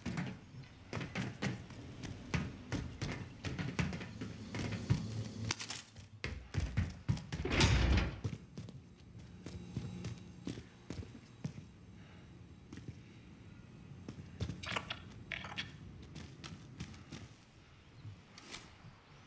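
Quick footsteps thud on hard floors and metal steps.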